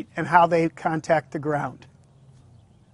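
A middle-aged man speaks calmly into a clip-on microphone close by.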